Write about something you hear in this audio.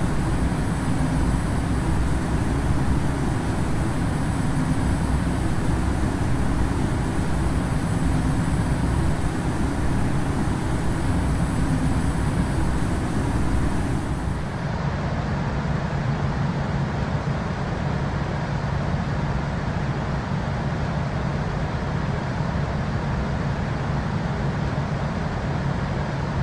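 Jet engines roar steadily and muffled.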